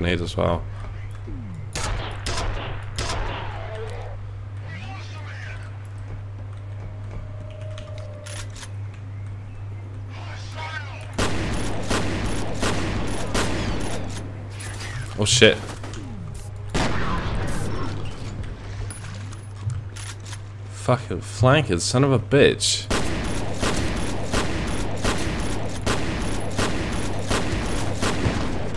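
Rapid gunfire rattles in bursts, echoing off hard walls.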